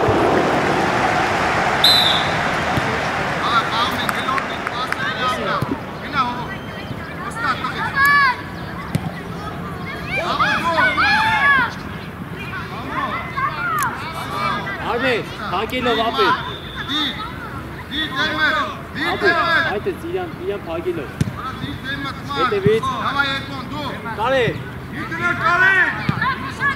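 Children shout and call out across an open field.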